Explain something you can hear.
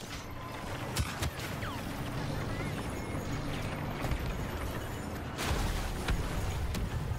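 Blaster shots zap in short bursts.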